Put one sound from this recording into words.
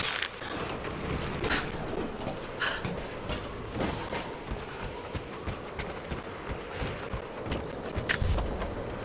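Footsteps thud on wooden boards at a run.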